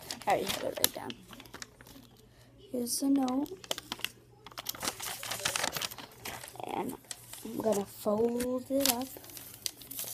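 A young girl speaks close to the microphone in a high, sing-song voice.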